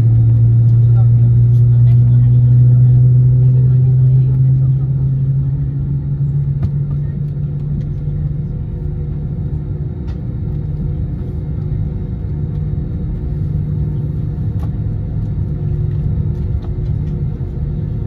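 The jet engines of an Airbus A321 drone low, heard from inside the cabin, as the airliner taxis.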